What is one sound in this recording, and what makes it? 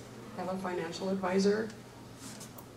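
An older woman speaks into a microphone in short phrases.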